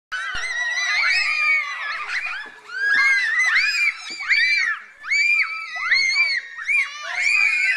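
Young children shout and squeal excitedly outdoors.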